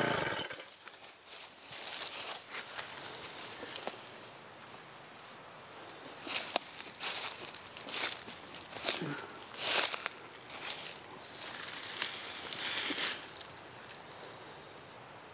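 Dry leaves and soil rustle and scrape under a man's hands.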